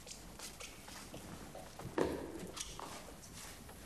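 Footsteps walk slowly across a wooden floor.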